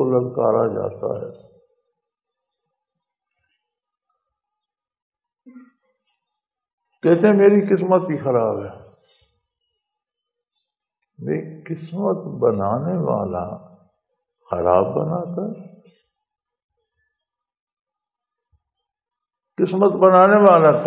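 An elderly man speaks slowly and deliberately into a close microphone, with long pauses.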